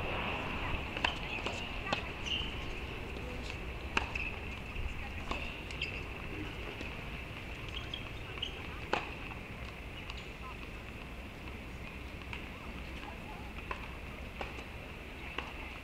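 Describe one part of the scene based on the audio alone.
Tennis balls are struck with rackets and bounce on a hard court, heard from a distance outdoors.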